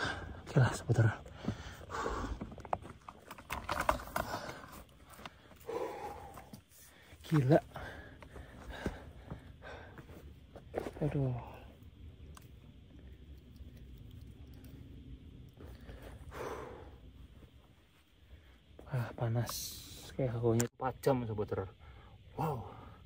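A young man talks close up, animated and slightly breathless.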